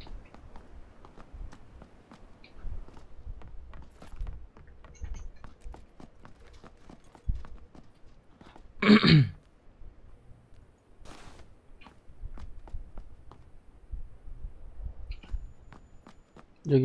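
Footsteps thud and scuff on hard floors.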